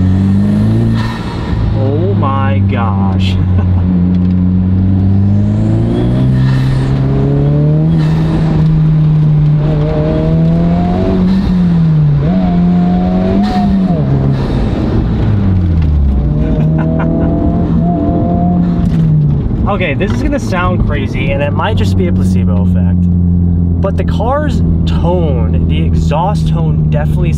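A car engine drones loudly inside the cabin, revving up and dropping as gears change.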